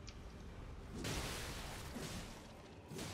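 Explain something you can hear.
A blade swings with a sharp whoosh.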